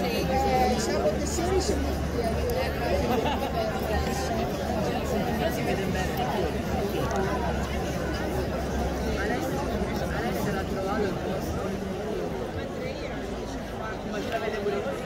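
A large seated crowd murmurs and chatters in an open-air arena.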